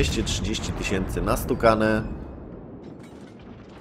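Shells explode on a ship with sharp blasts.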